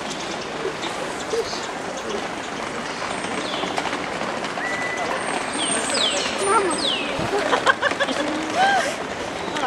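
A young girl talks close by.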